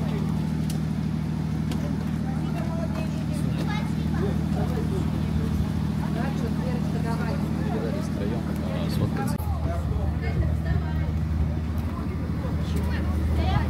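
People murmur quietly nearby.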